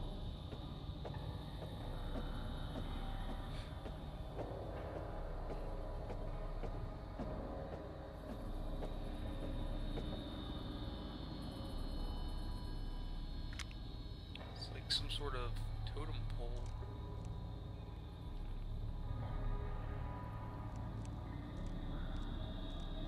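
Footsteps shuffle slowly on a hard floor.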